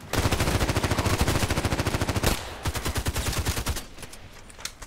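Rapid gunfire crackles loudly.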